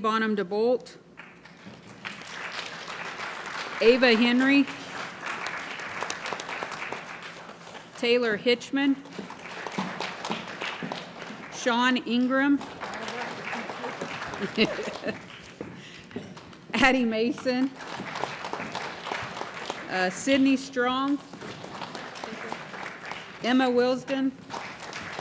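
People clap their hands in steady applause.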